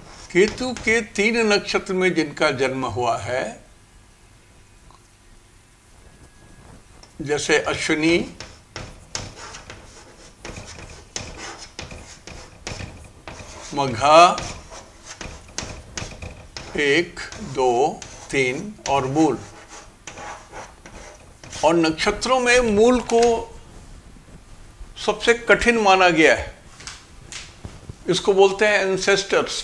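An elderly man speaks calmly, as if teaching, close by.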